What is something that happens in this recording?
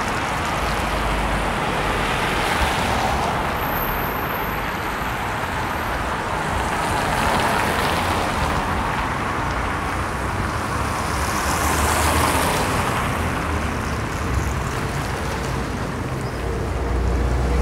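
City traffic rumbles steadily along a street outdoors.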